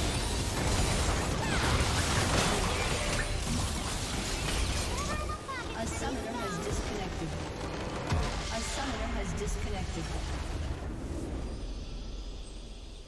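Video game spell effects and hits clash in a battle.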